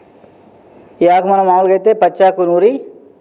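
A man speaks into a microphone close up, with animation.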